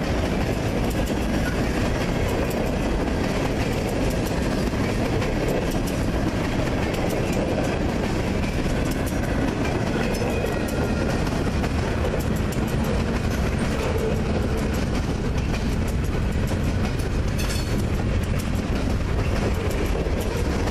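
A long freight train rolls past, steel wheels rumbling on the rails.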